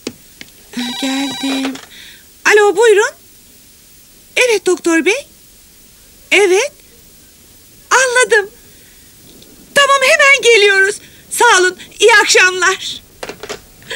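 A woman talks animatedly on the phone.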